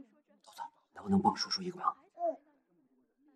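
A young woman speaks gently at close range.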